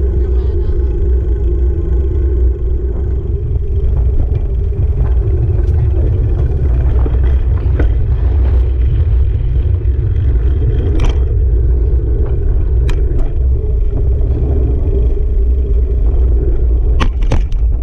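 Wind buffets a microphone outdoors with a heavy, steady rumble.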